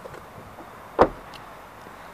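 A car door shuts with a solid thud.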